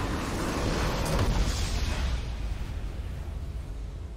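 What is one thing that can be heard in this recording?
A triumphant victory fanfare swells.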